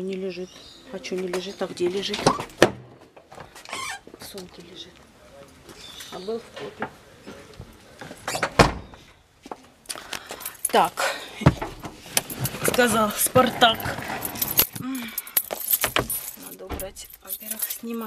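A middle-aged woman talks close by, casually.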